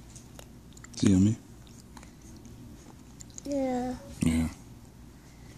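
A toddler says a few short words up close.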